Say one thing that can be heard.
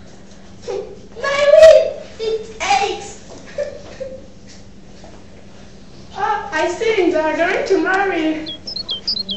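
A young girl speaks loudly with animation close by.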